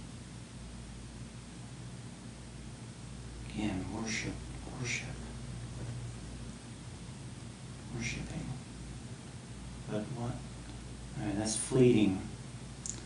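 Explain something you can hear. A pen scratches softly on paper.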